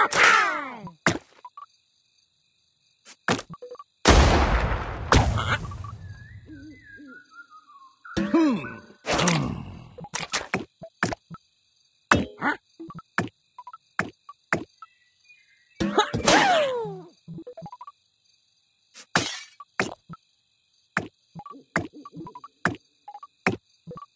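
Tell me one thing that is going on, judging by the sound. Game pieces pop with short chiming effects.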